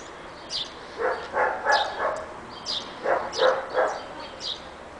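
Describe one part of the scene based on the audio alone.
Puppies yap and whine in short bursts.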